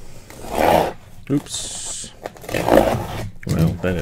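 A blade slices through packing tape on a cardboard box.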